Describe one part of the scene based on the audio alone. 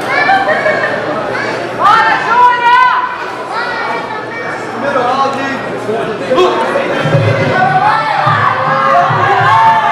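A crowd shouts and cheers outdoors.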